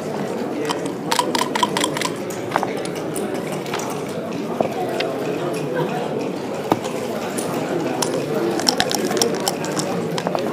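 Dice rattle and tumble onto a board.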